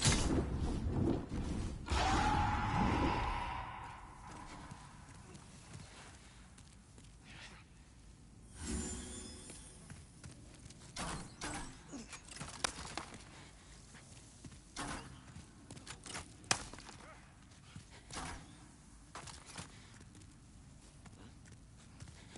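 Footsteps clatter on stone as an armoured figure runs.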